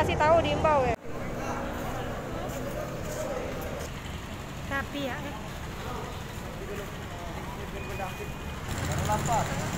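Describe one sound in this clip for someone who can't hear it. A crowd murmurs in a busy open space.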